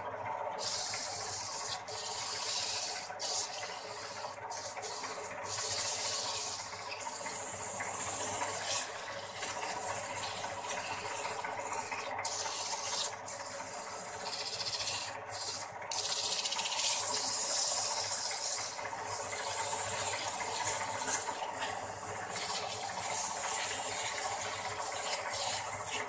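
A wood lathe whirs steadily as it spins.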